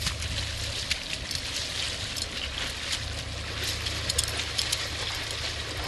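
Boots splash through shallow water.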